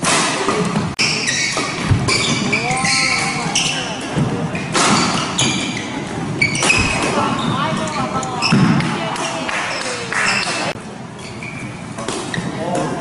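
Shuttlecocks are struck sharply with rackets.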